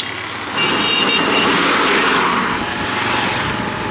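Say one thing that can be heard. A bus roars past close by.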